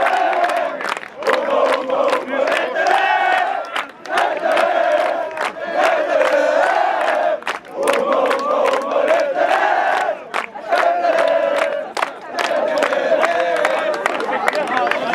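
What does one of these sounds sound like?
A group of young men chants and sings loudly together outdoors.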